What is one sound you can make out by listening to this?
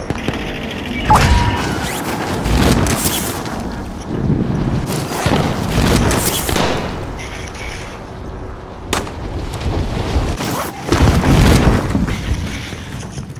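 Wind rushes loudly past during a fast fall, surging and easing.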